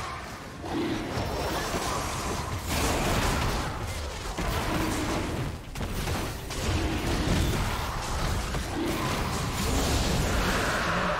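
Magic blasts and hits crackle and whoosh in a fast fight.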